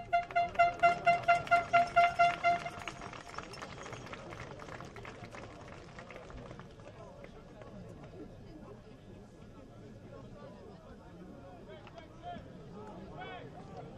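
A crowd of spectators chatters and cheers at a distance outdoors.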